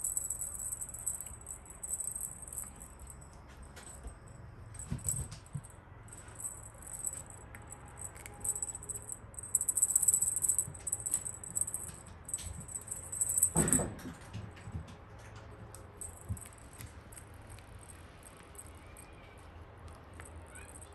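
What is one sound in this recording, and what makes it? Feathers on a toy rustle and swish as a cat bats at them.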